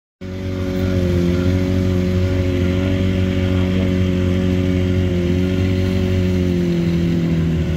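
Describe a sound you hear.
A boat engine hums steadily on the water.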